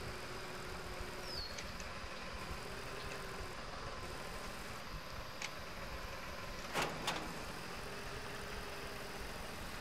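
A small tractor engine rumbles steadily.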